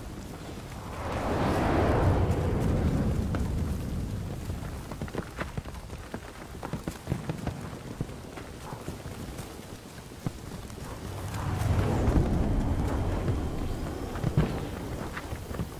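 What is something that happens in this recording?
Strong wind gusts roar in a storm.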